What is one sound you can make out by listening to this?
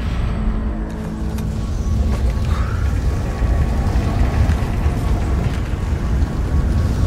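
Flames burn with a low, steady roar.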